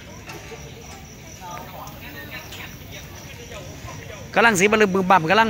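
People chatter quietly in the distance.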